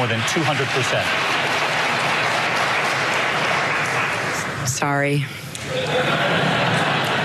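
A large audience applauds and cheers.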